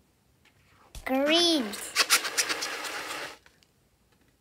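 A rubber balloon squeaks as hands squeeze it.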